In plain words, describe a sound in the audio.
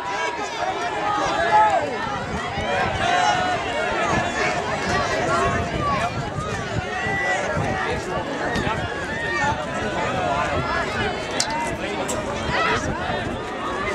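A crowd of young spectators cheers and shouts loudly outdoors.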